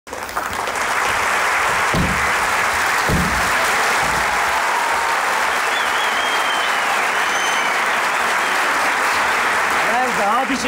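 A large audience applauds and cheers loudly in a big hall.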